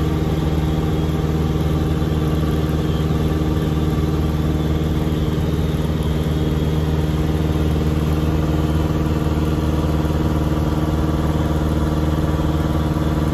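A small propeller plane's engine drones loudly and steadily from close by.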